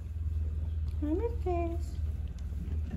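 A cat meows twice nearby.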